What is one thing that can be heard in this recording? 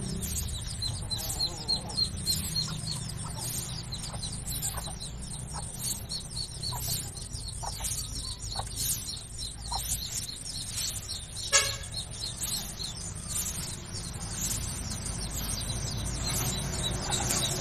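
Rabbits nibble and munch on dry grass close by.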